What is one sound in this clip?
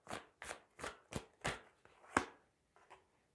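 Playing cards click and slap as they are shuffled.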